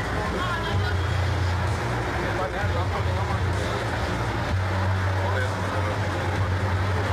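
Wheelchair wheels roll over pavement.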